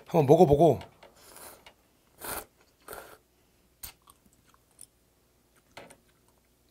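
A boy slurps noodles noisily.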